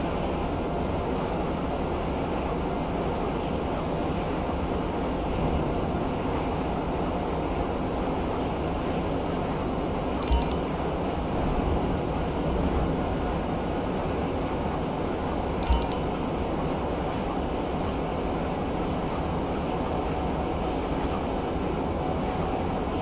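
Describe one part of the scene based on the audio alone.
A jet-powered engine roars steadily.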